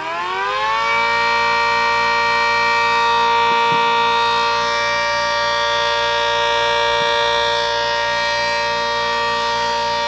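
An electric mechanical siren holds a steady, loud wail.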